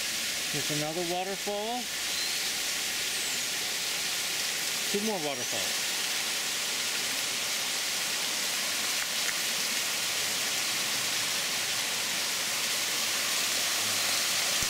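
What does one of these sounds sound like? A small waterfall splashes over stone ledges into a shallow pool.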